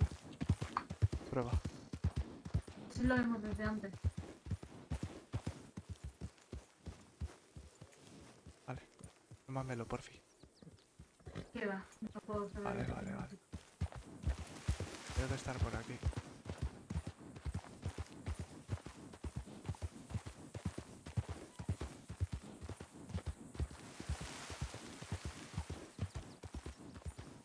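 A horse's hooves thud steadily on the ground at a walk.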